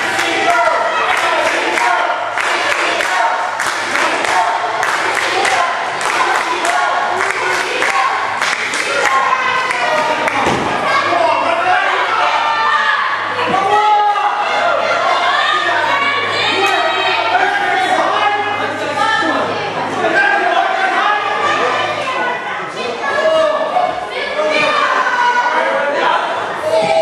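A crowd of men and women shouts and cheers.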